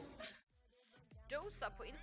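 A young woman speaks into a headset microphone.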